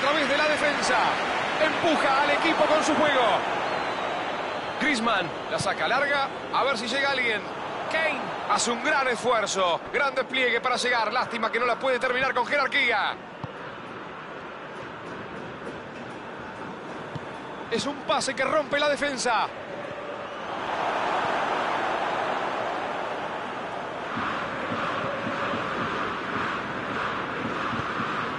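A stadium crowd roars steadily in the background, swelling louder for a while.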